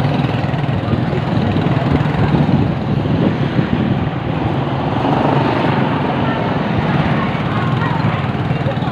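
Traffic rumbles along a busy street outdoors.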